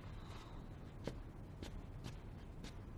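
Footsteps tap across a floor.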